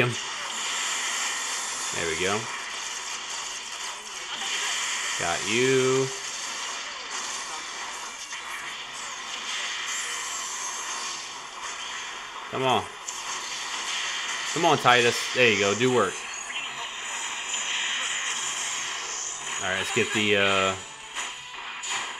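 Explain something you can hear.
Video game blasts and electronic effects play steadily.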